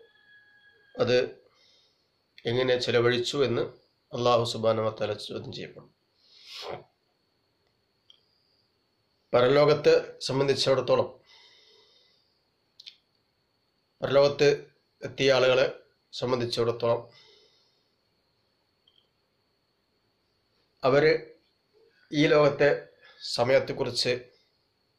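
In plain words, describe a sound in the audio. A man speaks calmly and close up, in short phrases with pauses.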